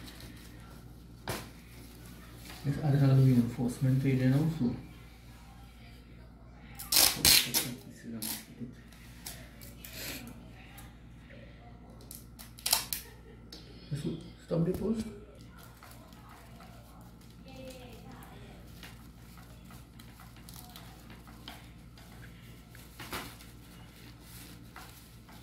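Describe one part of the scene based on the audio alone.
A plastic sheet crinkles under handling hands.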